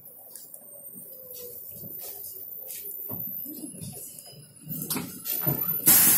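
A bus engine rumbles as a bus passes close by.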